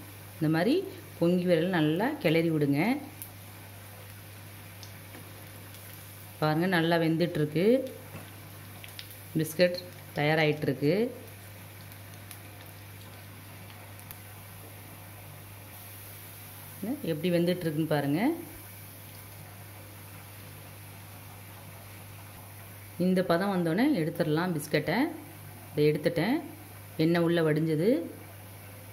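Hot oil sizzles and bubbles steadily in a pan.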